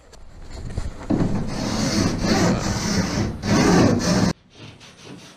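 A sanding block rasps back and forth on wood.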